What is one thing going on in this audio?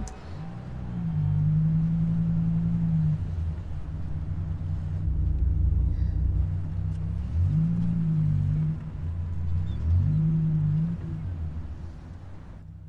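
A sports car engine roars and revs.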